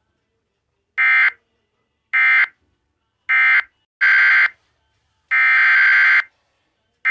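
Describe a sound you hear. Loud electronic alert tones sound in short bursts through a small loudspeaker.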